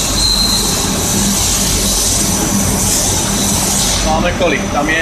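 A lathe spins with a steady, loud whirring hum.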